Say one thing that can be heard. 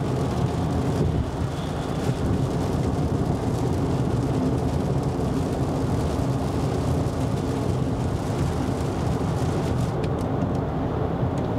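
Windscreen wipers sweep across the glass.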